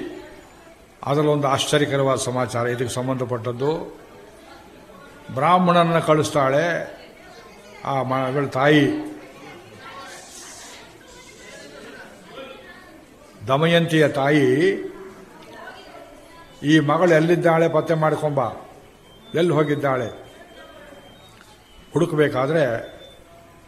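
An elderly man sings a slow chant in short phrases, close to a microphone.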